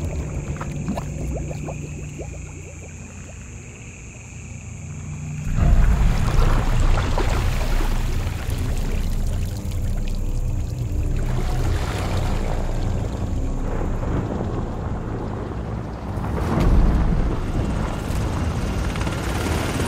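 Rain patters steadily on water.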